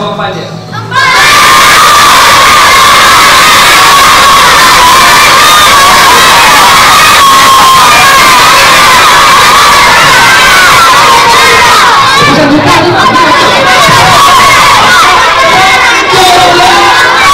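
A crowd of children shouts and cheers loudly.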